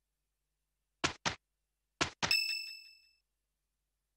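Short electronic blips and a bright chime sound from a game menu.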